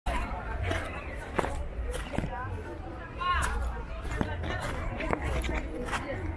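Footsteps crunch on a dirt and gravel path.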